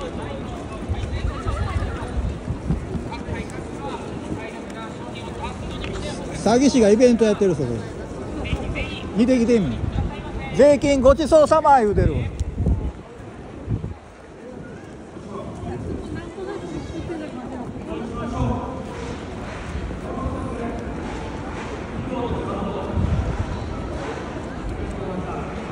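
A crowd of people murmurs and chatters outdoors.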